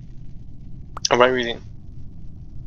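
A short electronic chat alert chimes.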